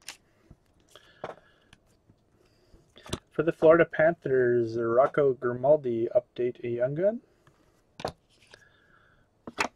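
Trading cards slide against each other as someone flips through them.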